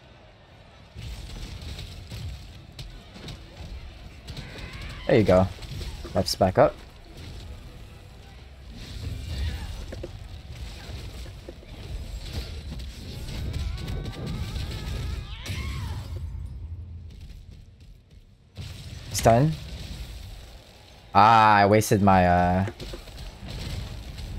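Game spell effects crackle and boom.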